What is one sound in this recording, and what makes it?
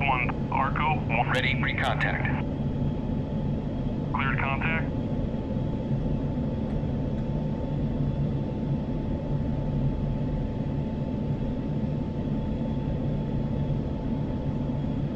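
A jet engine roars in a steady low drone.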